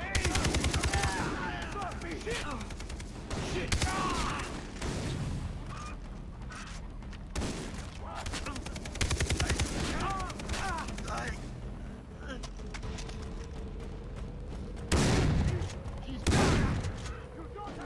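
A rifle fires rapid bursts of shots close by.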